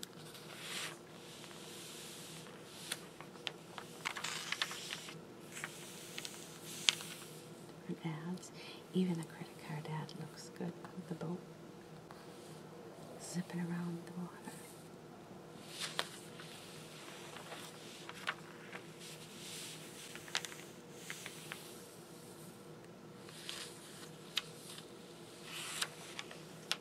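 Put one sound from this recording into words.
Glossy magazine pages turn and crinkle close up.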